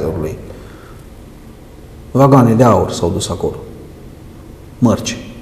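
A man speaks calmly and close to a microphone, in short bursts.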